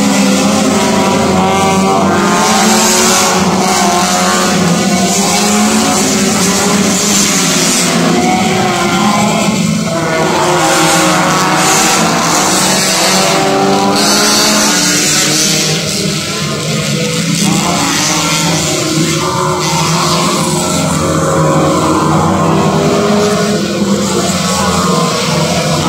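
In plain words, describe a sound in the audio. Car engines rise and fall in pitch as drivers shift gears through a bend.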